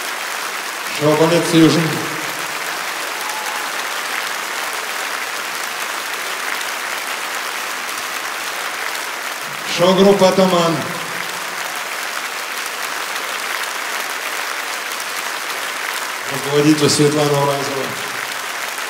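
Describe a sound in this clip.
A man speaks into a microphone in short phrases, heard over loudspeakers.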